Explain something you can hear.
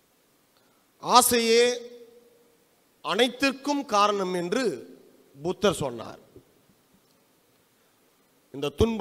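A man speaks with emphasis through a microphone, echoing in a large room.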